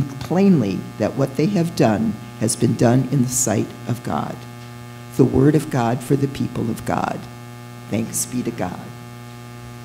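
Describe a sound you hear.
An elderly woman speaks steadily into a microphone in an echoing hall.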